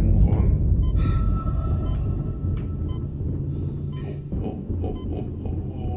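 Heavy boots clank on a metal floor as someone runs.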